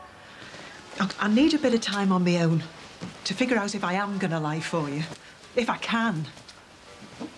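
A woman speaks loudly and angrily, close by.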